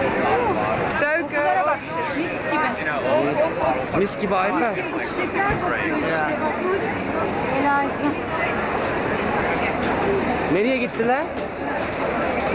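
Men and women talk nearby among the crowd.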